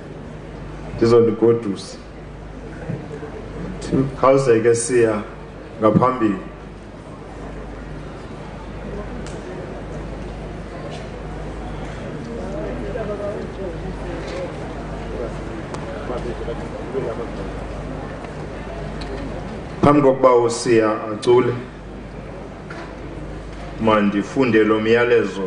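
A man speaks slowly and formally through a microphone and loudspeakers, with long pauses.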